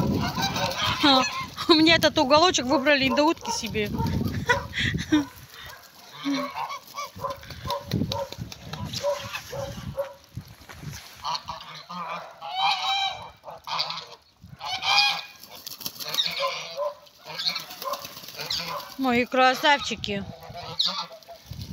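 Birds splash and paddle in a muddy puddle.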